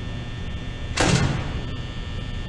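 A heavy metal door slams shut with a loud bang.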